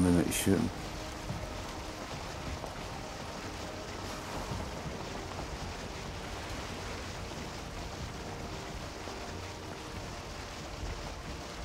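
Waves wash against a wooden boat's hull in a steady rush.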